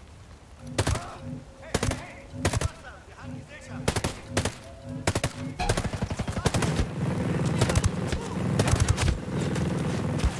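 Gunshots fire in quick single bursts, loud and close.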